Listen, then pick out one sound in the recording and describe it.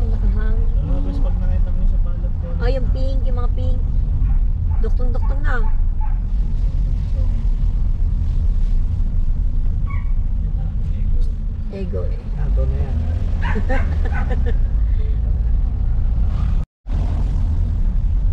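A car engine hums steadily from inside a moving car.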